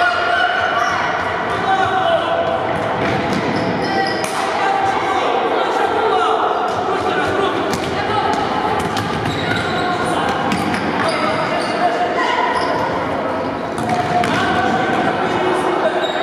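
A ball thuds off feet and the floor.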